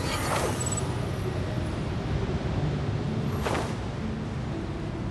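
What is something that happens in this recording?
Wind rushes steadily past, with brief louder whooshes.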